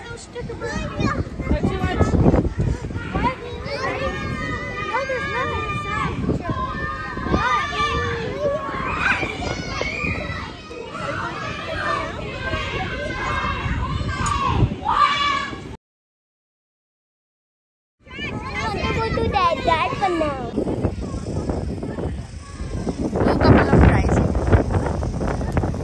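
Young children shout and chatter excitedly close by, outdoors.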